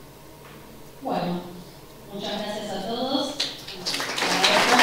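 A young woman speaks calmly through a microphone in a large echoing hall.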